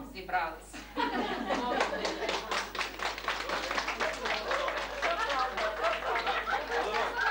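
A group of people clap their hands in applause.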